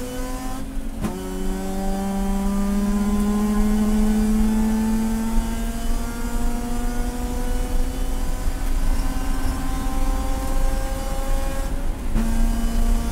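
A race car engine's pitch drops suddenly with each gear change.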